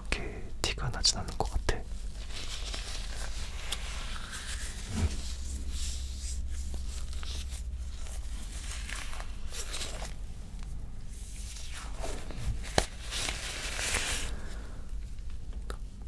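Leather gloves rustle and creak as they are pulled over hands.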